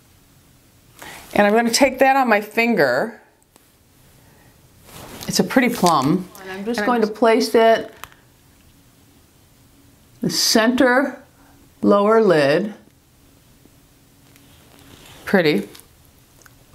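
A middle-aged woman talks calmly and close up.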